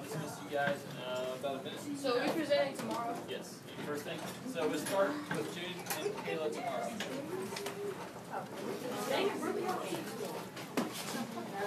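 A man talks calmly to a room of listeners.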